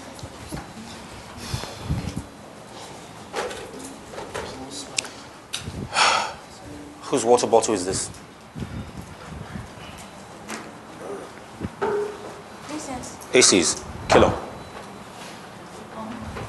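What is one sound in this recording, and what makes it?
A crowd of young men and women chatters and calls out in an echoing room.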